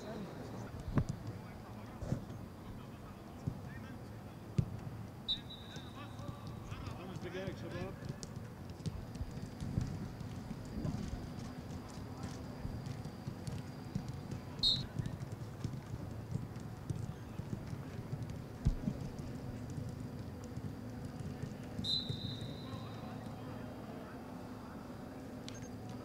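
Footballs thump as players kick them.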